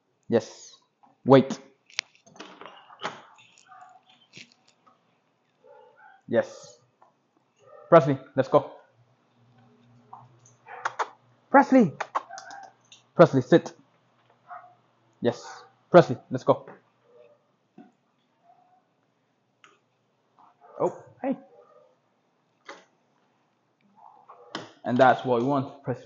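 A young man gives commands to a dog in short bursts, close by.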